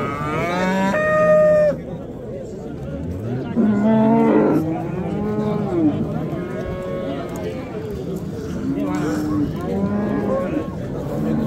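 A cow moos loudly nearby.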